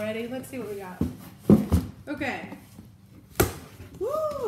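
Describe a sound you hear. A cardboard box thumps and rustles as it is handled.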